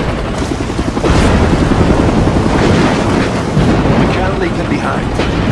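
Heavy rain pours down in a storm.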